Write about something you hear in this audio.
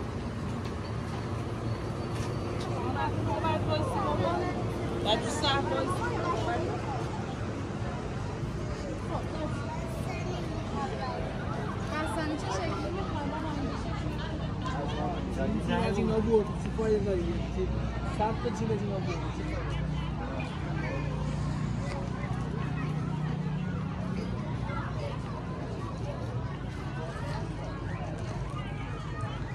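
Voices of men and women chatter nearby outdoors.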